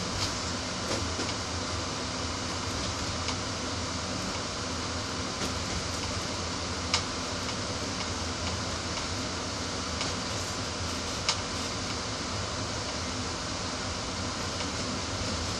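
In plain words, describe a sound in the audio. Train wheels click now and then over rail joints.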